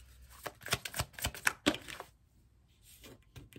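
A card is laid down on a hard table with a soft tap.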